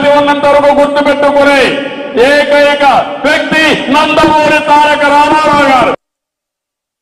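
A middle-aged man speaks loudly into a microphone to a crowd.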